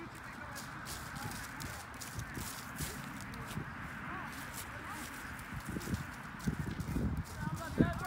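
Footsteps crunch through dry leaves on grass.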